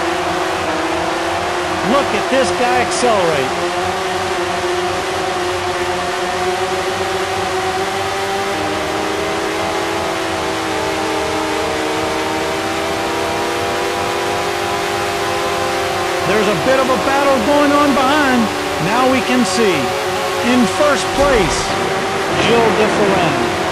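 A racing car engine whines steadily at high speed, rising in pitch as the car speeds up.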